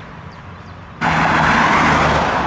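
A car drives past on a nearby street.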